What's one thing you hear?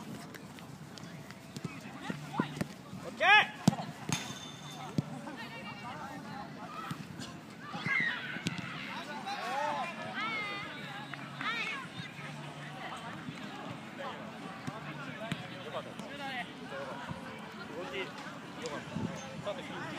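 Young men shout to each other outdoors across a sports field.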